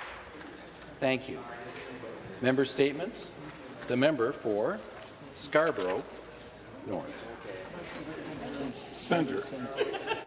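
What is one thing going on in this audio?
A man speaks formally into a microphone in a large echoing hall.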